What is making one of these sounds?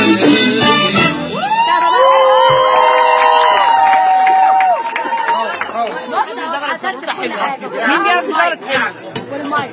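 A crowd cheers and chatters at a lively party.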